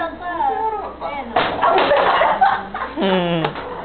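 A young woman talks and laughs nearby.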